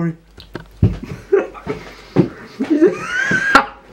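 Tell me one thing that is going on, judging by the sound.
A young man laughs loudly.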